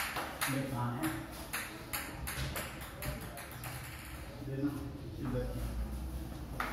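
A ping-pong ball clicks sharply back and forth in a room with a slight echo.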